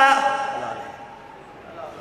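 A man's voice recites through a microphone and loudspeakers.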